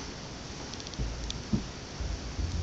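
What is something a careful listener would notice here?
A toddler sets a plastic crate down with dull thumps onto a carpeted floor.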